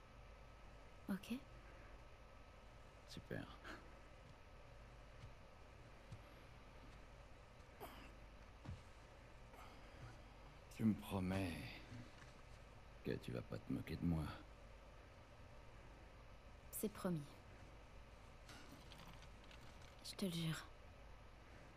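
A girl answers quietly, close by.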